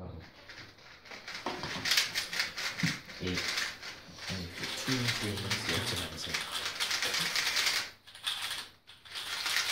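Puzzle cubes clatter and click rapidly as they are twisted.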